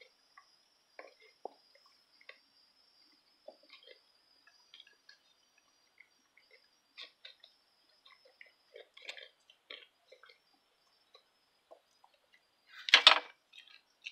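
A goat slurps and laps water from a bucket up close.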